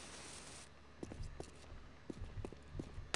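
Footsteps scuff on a concrete floor.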